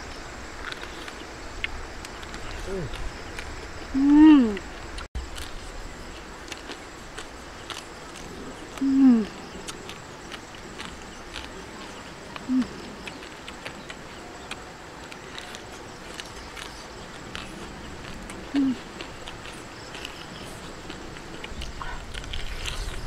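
A young woman chews and tears meat with soft wet clicks.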